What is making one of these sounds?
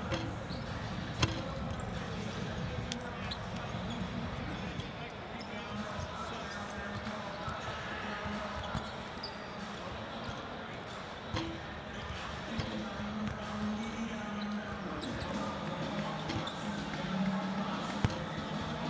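A crowd murmurs throughout a large echoing arena.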